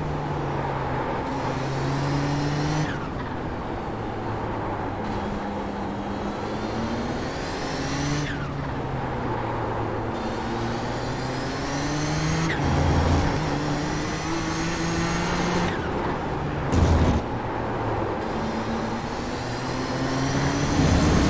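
A racing car engine roars loudly, revving up and dropping at each gear change.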